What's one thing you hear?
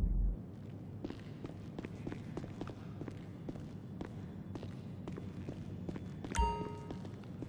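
Footsteps fall on a concrete floor.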